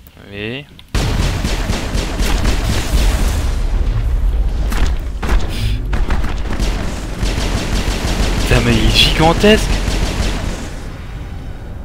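Energy weapons fire in rapid, loud bursts.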